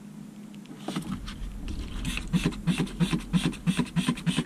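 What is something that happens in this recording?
A spray bottle hisses in quick, repeated bursts.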